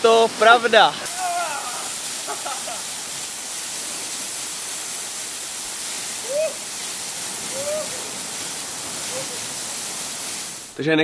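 A waterfall splashes steadily onto rocks.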